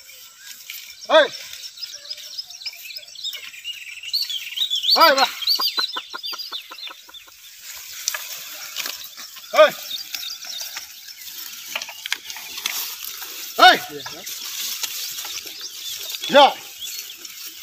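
A man calls out loudly to oxen outdoors.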